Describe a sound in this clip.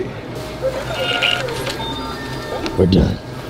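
A checkout scanner beeps.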